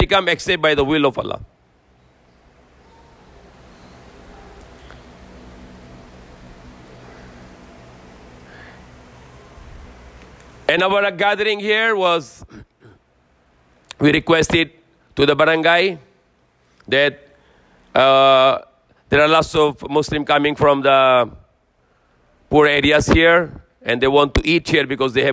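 A man chants loudly into a microphone in short phrases with pauses between them.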